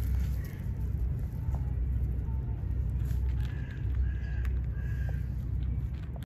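Cats chew food noisily.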